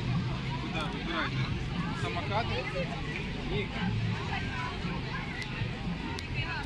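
A crowd of adults and children chatters all around outdoors.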